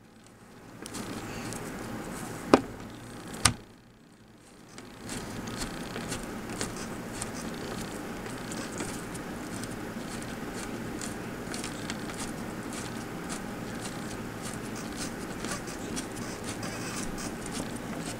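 A screwdriver turns a screw, making soft scraping clicks.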